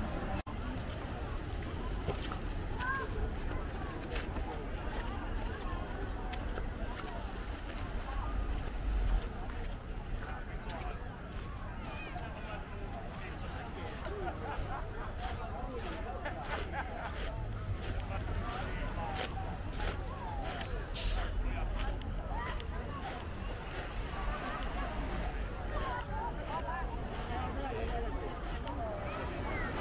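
Footsteps crunch on pebbles.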